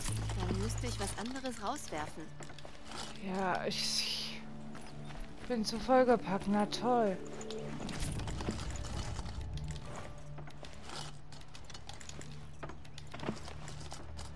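Short interface clicks sound as items are picked up.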